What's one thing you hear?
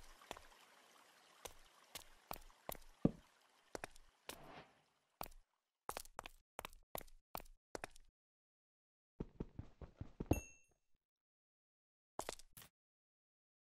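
A pickaxe chips at stone in quick knocks.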